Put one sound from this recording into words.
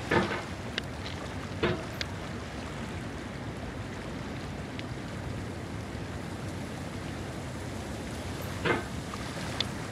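A metal hammer knocks and scrapes against rock now and then.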